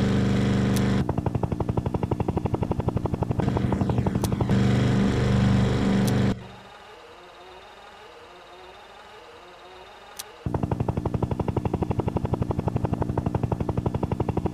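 A helicopter's rotor chops rapidly and evenly.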